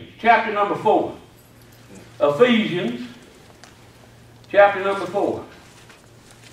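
An elderly man speaks calmly through a microphone, in short phrases with pauses.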